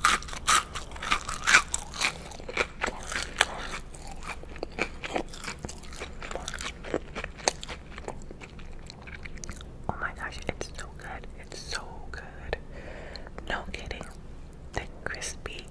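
Wet lip and mouth sounds click and smack close to a microphone.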